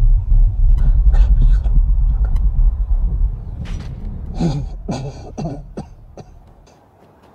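A man murmurs quietly, close by.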